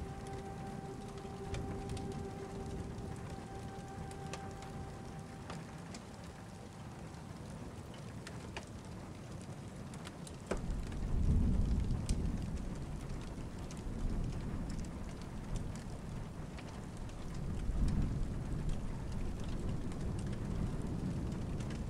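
Rain patters steadily against a window.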